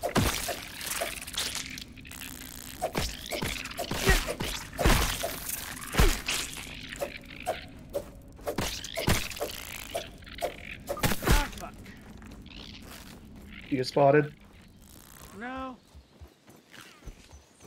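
A man talks into a headset microphone with animation.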